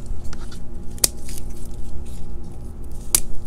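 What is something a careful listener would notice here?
Garden scissors snip through stems.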